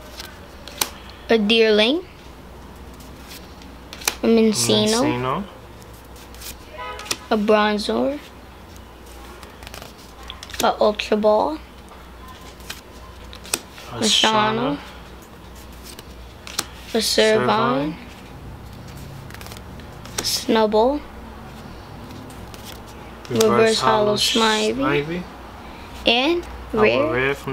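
Playing cards slide and flick against each other.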